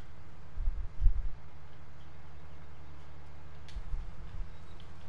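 A combine harvester engine rumbles steadily.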